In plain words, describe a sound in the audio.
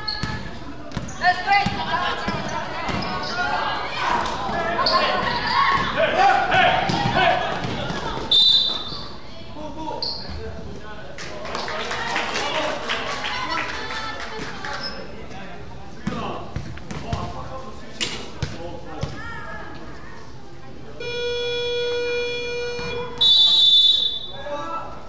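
A crowd of spectators cheers and shouts in an echoing hall.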